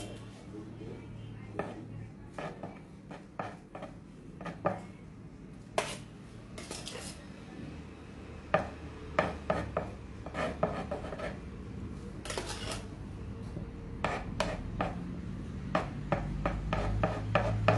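A metal spatula scrapes softly across frosting.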